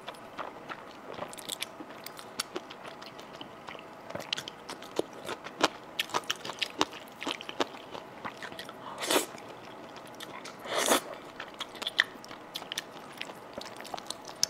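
A woman chews wet food with smacking sounds, close to a microphone.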